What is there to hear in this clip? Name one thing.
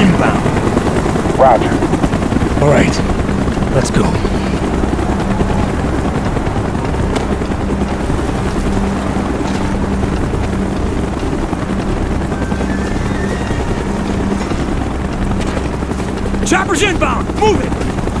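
A man speaks tersely over a radio.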